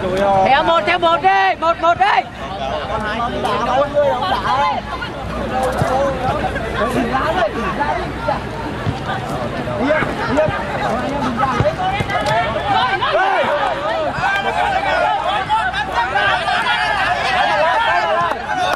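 Young men shout to each other across an open-air pitch.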